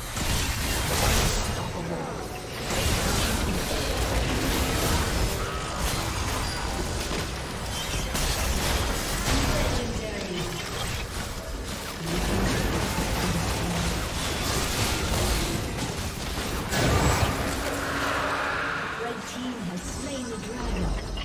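Game spells whoosh and clash in a busy fight.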